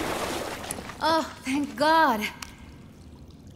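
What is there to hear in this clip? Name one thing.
A young woman speaks with relief.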